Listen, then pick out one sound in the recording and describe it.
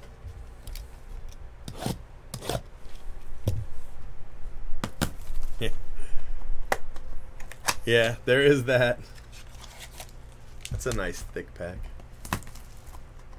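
A small cardboard box scrapes and rustles as hands handle and open it.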